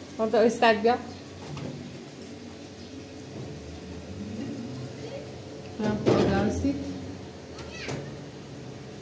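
A woman talks close by in a soft, playful voice.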